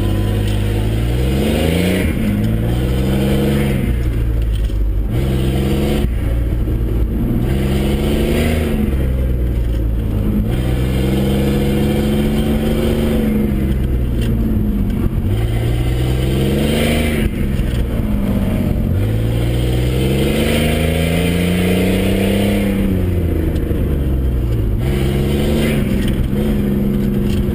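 A car engine revs up and down hard, close by.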